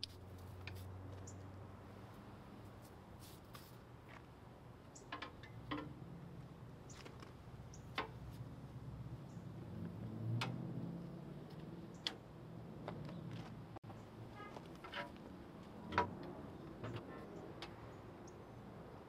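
Metal parts clank and click now and then.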